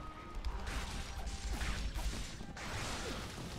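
Blades whoosh and clang in a fast fight.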